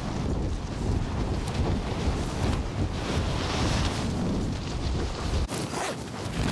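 Wind rushes loudly past during a fast fall, then suddenly dies down.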